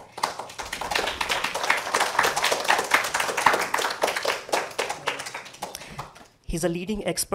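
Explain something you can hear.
An audience claps and applauds.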